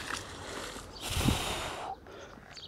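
A heavy magnet splashes into water.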